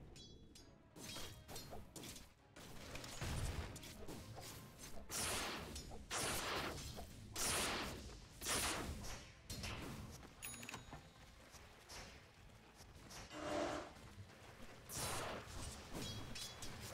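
Game spells and attacks burst and crash in a fight.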